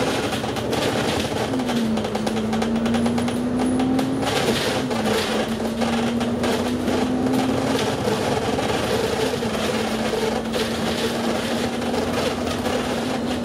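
A bus engine drones steadily, its pitch dropping and climbing as it changes gear.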